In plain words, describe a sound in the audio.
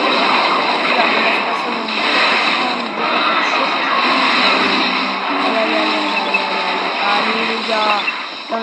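Cartoonish battle sound effects clash and crackle.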